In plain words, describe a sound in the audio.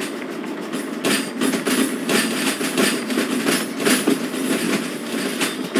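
A steam locomotive chuffs in rapid bursts.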